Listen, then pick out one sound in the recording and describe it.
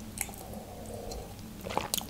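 A young woman sips from a mug.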